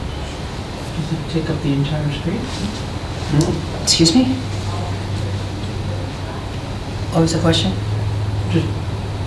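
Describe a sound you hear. A man speaks calmly, heard through a room microphone.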